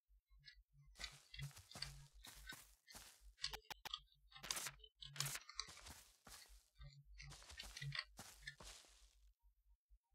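Footsteps tap lightly on a wooden floor.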